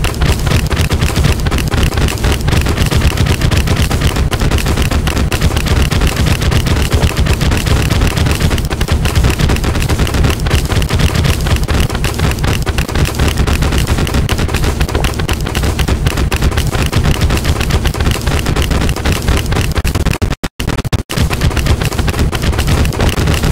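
Video game spell effects fire in rapid bursts.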